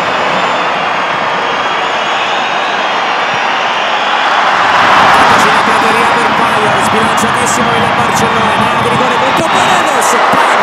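A large stadium crowd roars and chants, swelling louder as the attack builds.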